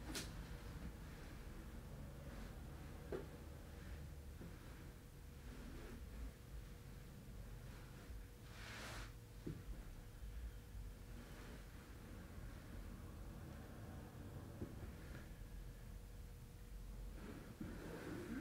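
Fabric rustles softly as people shift on a mattress.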